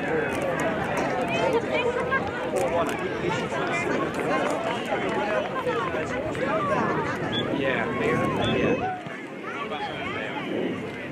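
A crowd of children shouts and cheers outdoors.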